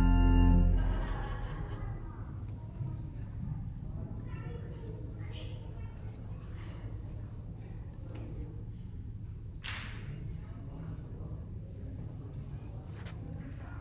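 Several adults talk quietly in a large echoing hall.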